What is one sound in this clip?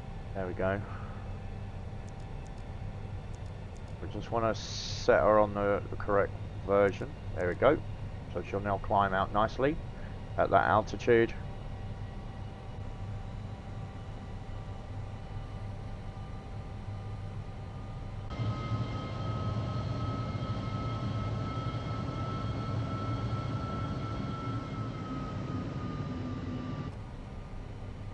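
Jet engines drone steadily, growing louder with a high whine.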